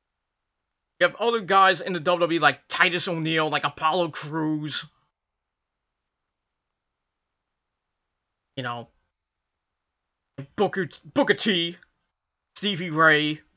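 A middle-aged man talks close to a microphone in short bursts, with pauses.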